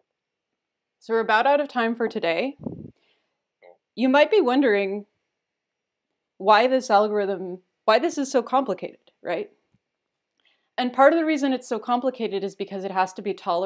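A woman speaks calmly and close to a microphone, pausing between phrases.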